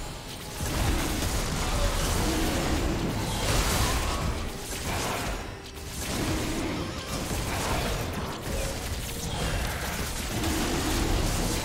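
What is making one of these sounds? Magic spells whoosh and crackle in a fast video game battle.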